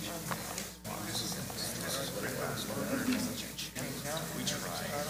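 An older man speaks calmly in a large, echoing hall.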